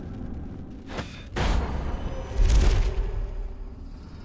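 A heavy metal door swings open with a loud whoosh.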